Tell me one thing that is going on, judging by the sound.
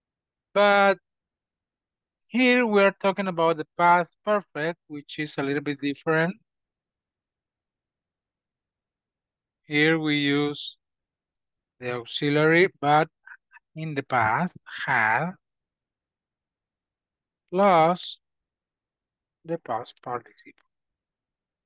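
A man speaks calmly through an online call microphone, in short phrases with pauses.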